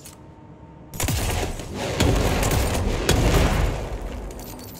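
A pistol fires a burst of loud shots that boom through a large room.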